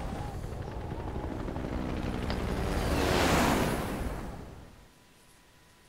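Fire roars and rumbles in a deep whoosh.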